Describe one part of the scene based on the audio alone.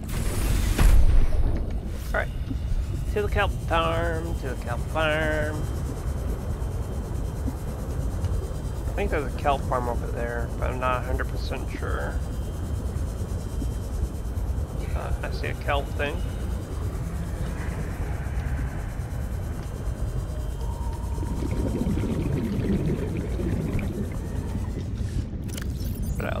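A small underwater vehicle's motor hums low and steadily as it glides through water.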